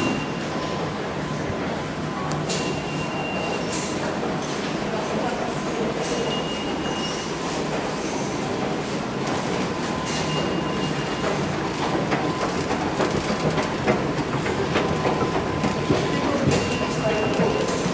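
Footsteps echo through a busy tiled underground passage.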